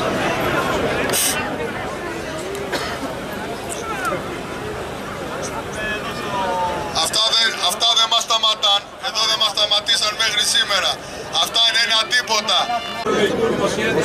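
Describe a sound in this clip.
A man speaks loudly and passionately through a microphone and loudspeaker.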